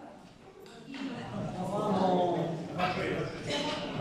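A group of men and women sing together.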